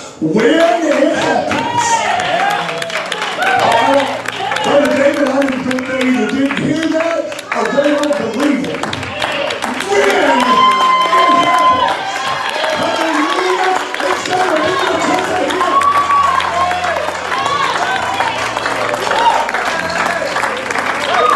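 Women sing backing vocals together.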